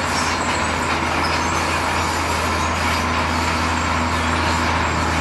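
Rocks and rubble slide and clatter out of a tipping truck bed.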